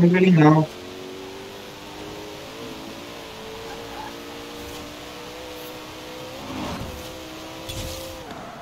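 A car engine drones steadily at high speed.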